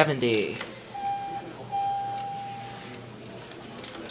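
An elevator chime sounds a steady tone twice.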